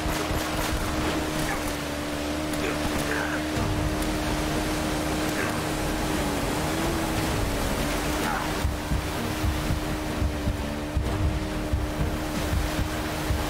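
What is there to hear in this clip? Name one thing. A jet ski engine hums steadily.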